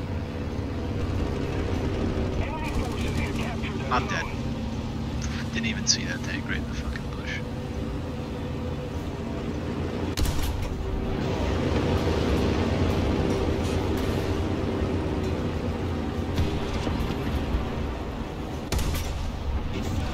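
A light tank's engine rumbles as it drives over rough ground.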